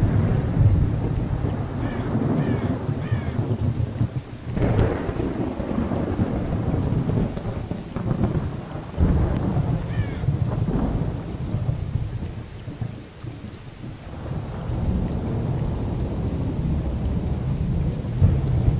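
Wind blows hard and rumbles outdoors.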